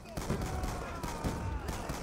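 A rifle fires nearby.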